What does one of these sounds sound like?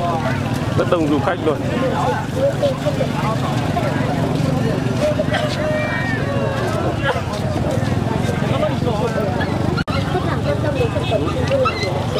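A crowd of men and women chatter all around outdoors.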